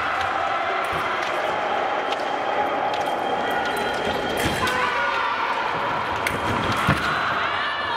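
Fencers' shoes stamp and squeak on the strip.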